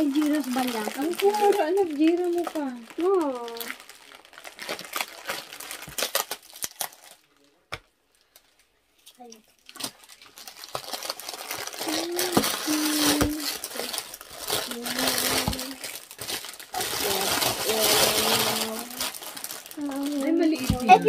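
Foil wrapping crinkles and rustles as it is torn open.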